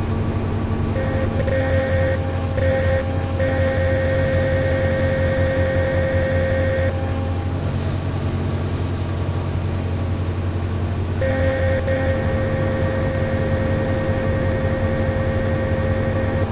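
A hydraulic pump whines in a steady high tone as the digging arm moves.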